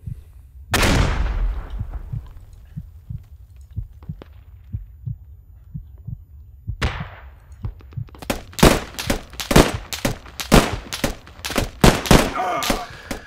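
A rifle fires loud single shots that ring out and fade.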